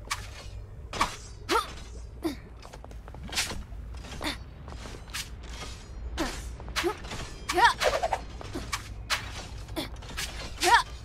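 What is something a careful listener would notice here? Short bouncy chirps sound as a small creature jumps.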